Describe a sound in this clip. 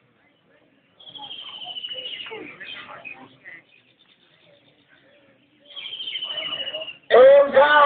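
A man speaks loudly into a microphone through a loudspeaker.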